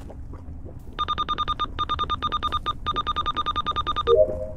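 Rapid electronic beeps repeat in quick bursts.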